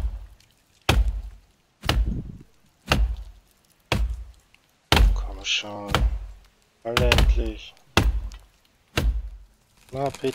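An axe chops into a tree trunk with sharp, steady blows.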